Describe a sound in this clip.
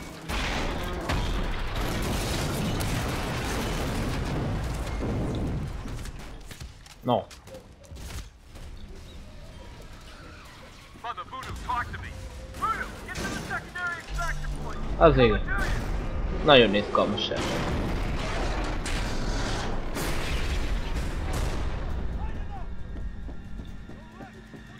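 Rapid gunfire rattles close by.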